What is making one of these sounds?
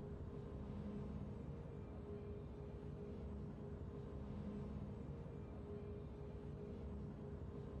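A triumphant fanfare of game music plays.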